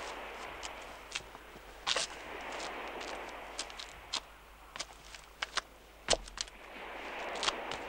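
Shoes scrape and scuff on rock as a man climbs.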